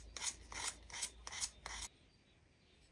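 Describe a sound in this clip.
Sandpaper rubs back and forth over wood in quick, even strokes.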